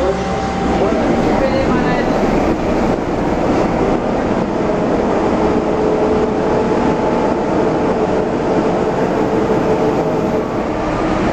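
A diesel locomotive engine revs up louder.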